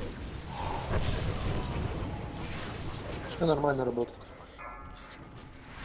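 Magic spells crackle and whoosh in a fantasy battle.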